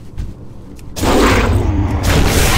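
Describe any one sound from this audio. A loud magical blast crashes during a fight.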